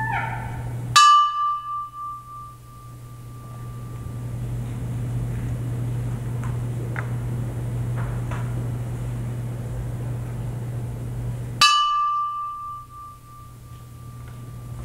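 A metal percussion instrument is struck and rings out in a large hall.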